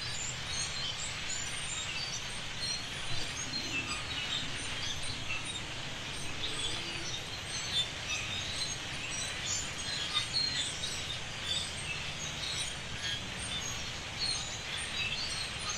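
Wind blows softly through trees outdoors.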